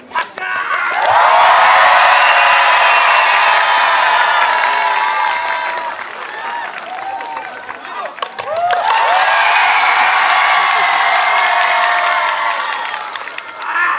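A large crowd cheers and shouts loudly in an open-air arena.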